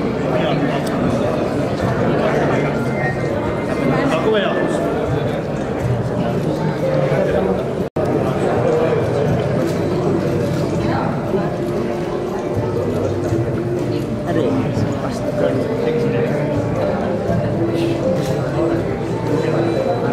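A crowd of men and women chatter nearby in a busy murmur.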